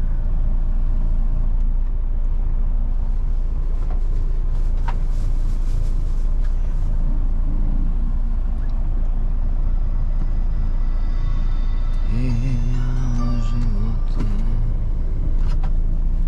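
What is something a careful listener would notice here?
A heavy truck engine rumbles steadily as the truck drives along.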